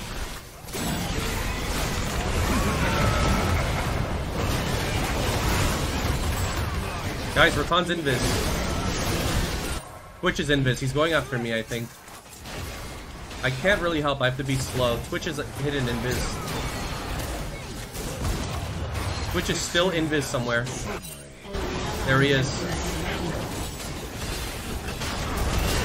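Video game spell effects whoosh and crackle throughout.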